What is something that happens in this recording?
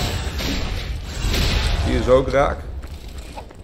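A burst of fiery energy explodes with a roar.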